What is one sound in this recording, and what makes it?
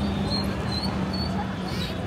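Auto-rickshaw engines hum and horns honk nearby.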